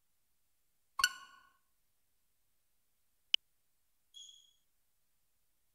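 A game console menu chimes as selections are made.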